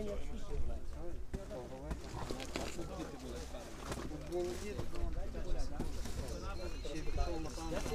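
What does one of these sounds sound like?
A man talks nearby in a calm voice.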